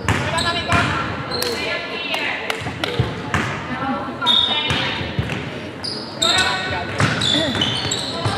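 Basketball shoes squeak sharply on a wooden court.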